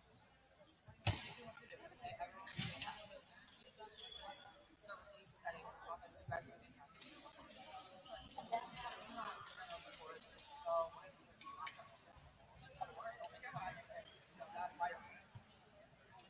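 Young women chatter and call out faintly in an echoing gym.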